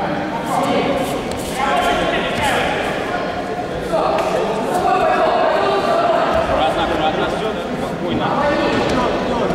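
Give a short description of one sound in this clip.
Bare feet shuffle and stamp on a mat.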